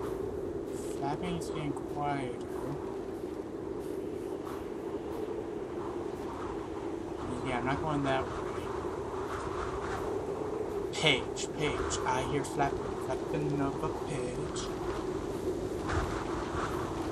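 A young man talks calmly, close to a microphone.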